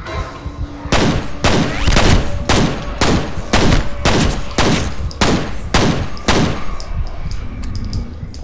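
A pistol fires a rapid series of loud shots.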